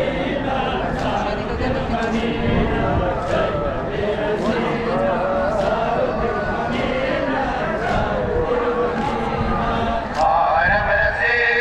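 Hands slap against bare chests in a steady, even rhythm.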